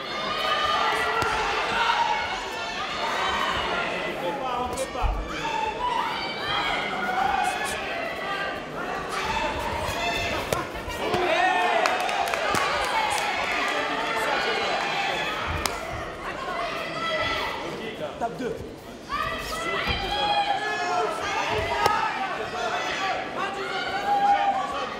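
A crowd cheers and shouts in a large hall.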